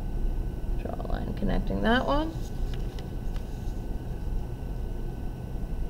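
Paper rustles as a sheet is moved.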